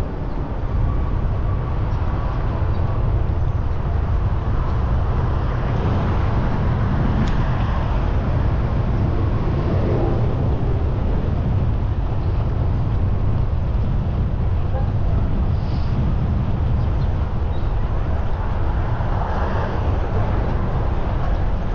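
City traffic rumbles steadily nearby.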